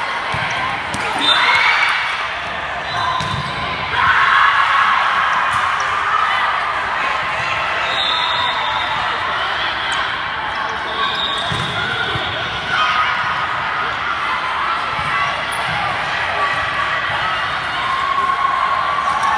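Young women shout and call to each other, echoing in a large gym.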